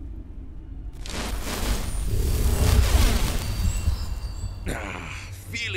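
A magical spell whooshes and shimmers.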